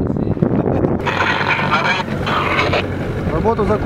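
A man speaks into a handheld radio.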